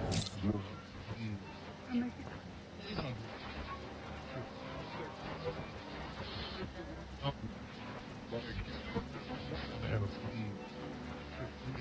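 Radio static crackles and hisses steadily.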